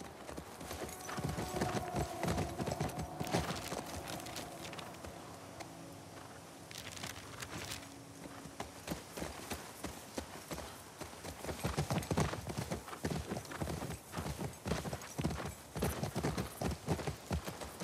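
A horse's hooves thud rhythmically on soft ground.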